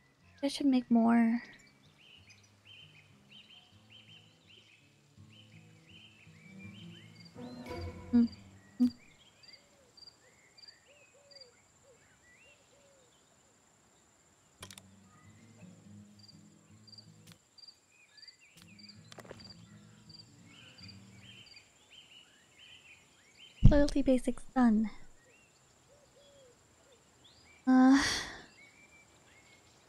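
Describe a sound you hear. A young woman speaks in short bursts into a microphone.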